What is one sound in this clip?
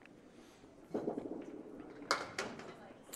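A candlepin ball rolls down a wooden lane.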